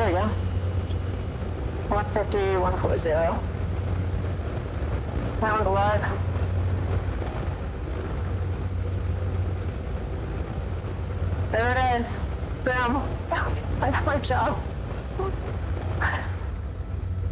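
A man speaks calmly through a headset microphone.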